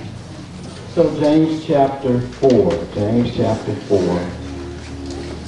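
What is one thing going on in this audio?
A man speaks loudly through a microphone in an echoing hall.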